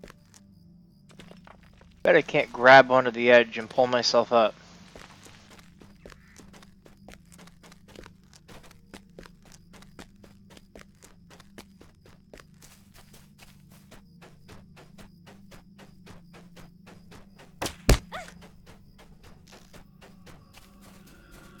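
Footsteps patter quickly and steadily.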